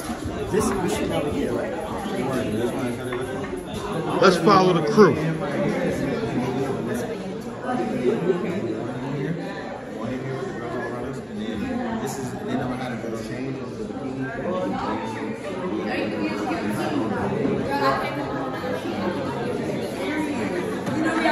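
A crowd of men and women chatter loudly all around.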